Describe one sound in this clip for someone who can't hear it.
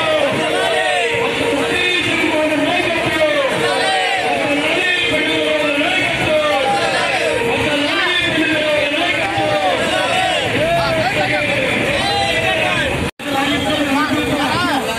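A crowd of men chants and shouts loudly close by.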